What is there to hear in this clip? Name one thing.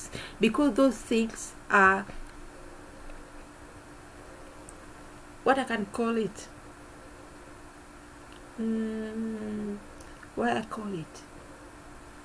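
A middle-aged woman speaks calmly and close up, in short phrases with pauses.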